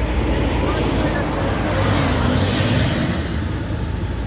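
A truck rumbles past close by.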